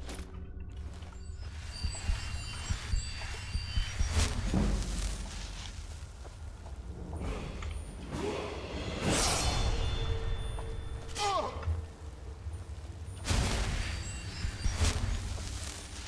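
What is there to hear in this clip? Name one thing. A magic spell crackles and whooshes in bursts.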